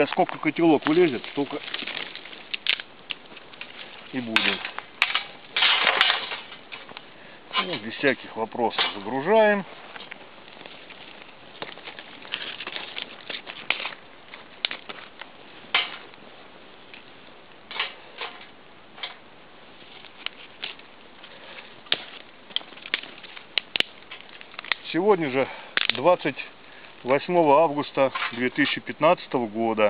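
A small wood fire crackles.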